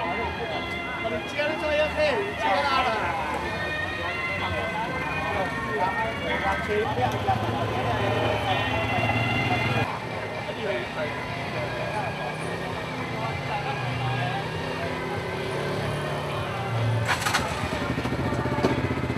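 Music blares from loudspeakers.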